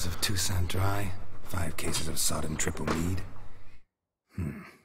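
A man in a deep voice murmurs while reading aloud to himself.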